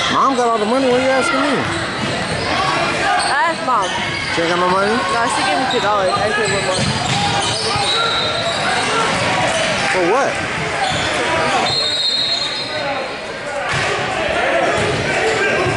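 Young players and spectators shout and call out in a large echoing hall.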